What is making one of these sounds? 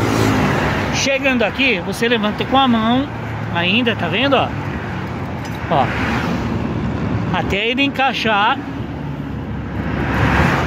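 A metal car jack clinks and rattles as a hand handles it.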